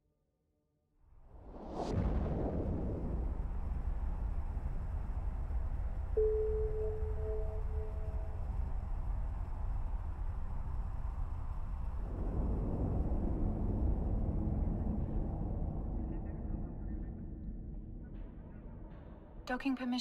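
A spaceship's engine roars with a deep, steady rumble after a sudden whoosh.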